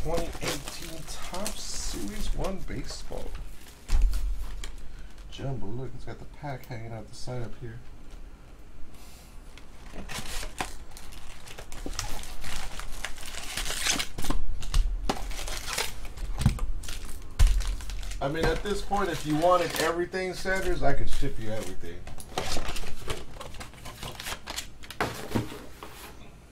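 Cardboard boxes thump and scrape on a table.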